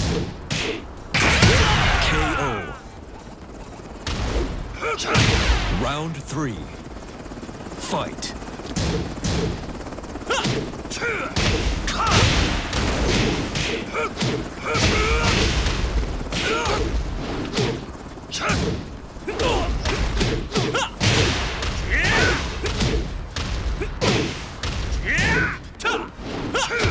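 Punches and kicks land with sharp smacks and thuds.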